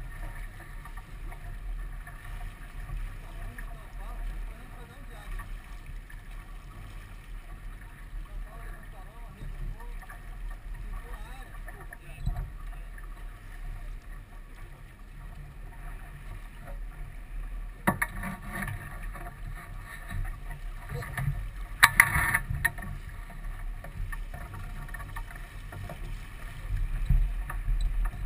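Water splashes against a moving sailboat's hull.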